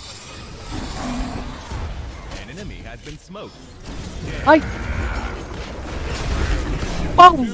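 Game battle effects clash, whoosh and crackle.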